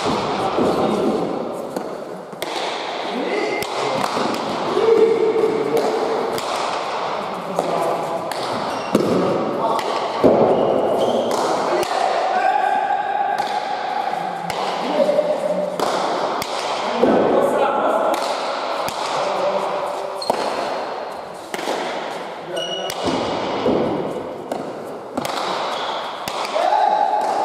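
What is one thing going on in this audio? A hard ball smacks sharply against walls and hands, echoing through a large hall.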